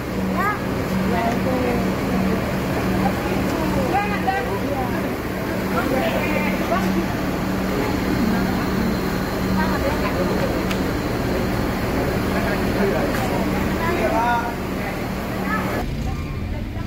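Men and women talk and greet each other with animation close by.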